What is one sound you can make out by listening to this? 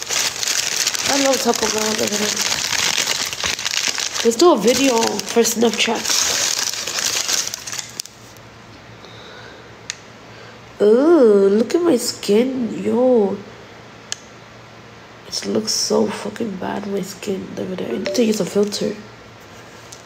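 A young woman talks casually and close by.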